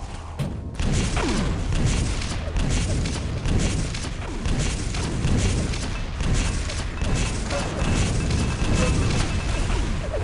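Rocket explosions boom repeatedly.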